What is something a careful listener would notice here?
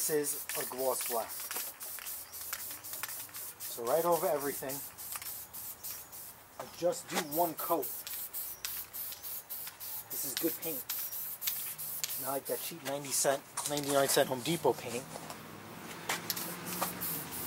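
An aerosol spray can hisses in short bursts.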